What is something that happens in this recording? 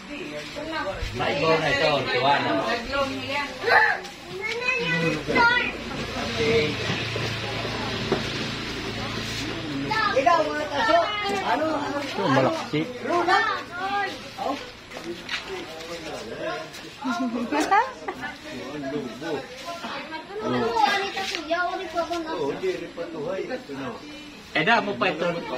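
Men and women talk and chatter nearby outdoors.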